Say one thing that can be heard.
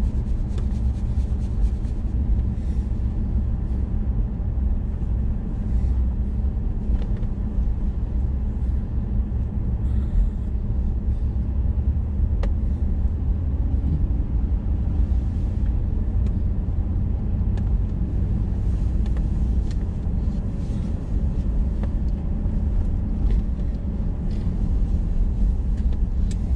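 A car engine rumbles steadily from inside the cabin while driving.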